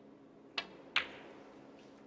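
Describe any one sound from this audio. Snooker balls knock together with a crisp clack.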